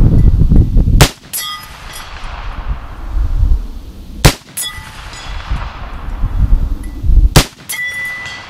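A rifle fires loudly outdoors, several times.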